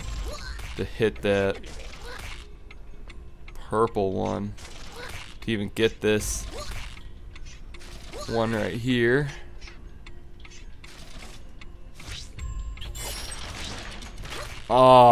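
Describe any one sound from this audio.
A video game plays short sliding effects as a piece moves.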